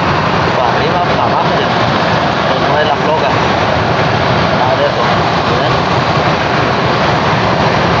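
An electric blower fan whirs steadily.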